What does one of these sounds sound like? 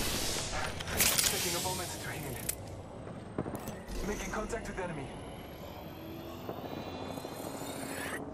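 A small device whirs and clicks.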